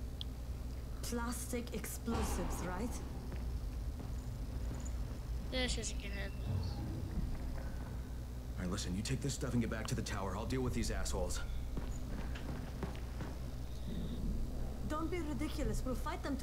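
A young woman speaks urgently, close by.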